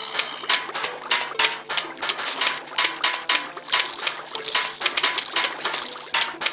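Peas hit approaching zombies with soft splats.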